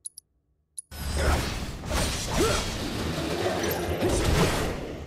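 Magical blasts crackle and boom in a fierce fight.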